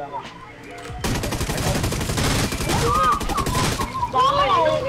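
Rapid gunfire rattles in a long burst.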